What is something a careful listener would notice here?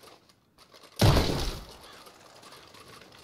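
A revolver fires a single loud shot that echoes.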